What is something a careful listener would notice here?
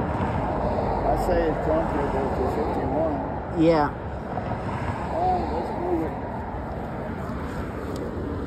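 Traffic rumbles past on a nearby road outdoors.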